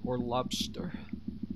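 A young man speaks briefly and casually through a microphone.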